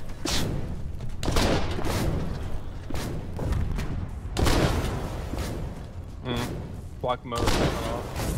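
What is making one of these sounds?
Explosions boom and rumble repeatedly.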